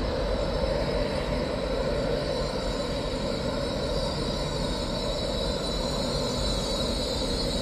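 A train hums and rumbles steadily as it rolls slowly past in the distance.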